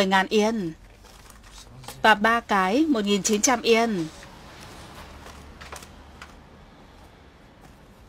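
Paper banknotes rustle softly.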